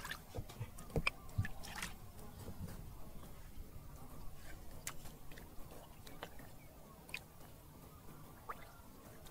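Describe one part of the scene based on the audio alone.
Shallow water splashes softly as a hand stirs it.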